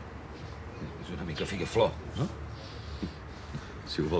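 A second middle-aged man answers calmly and close by.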